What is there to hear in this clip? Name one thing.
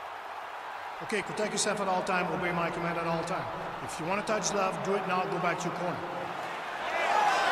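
A man announces loudly through a microphone in a large echoing arena.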